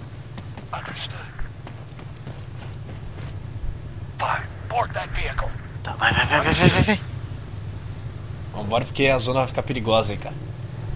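A quad bike engine idles with a low, steady hum.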